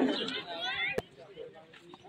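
A bat cracks against a ball.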